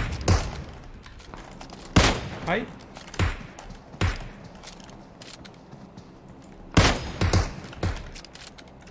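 Gunshots crack out in bursts.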